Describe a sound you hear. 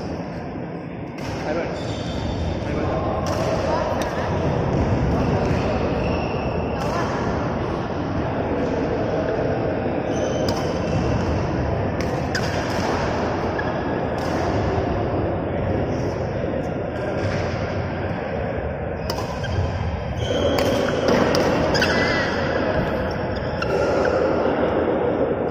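Sports shoes squeak and thud on a court floor.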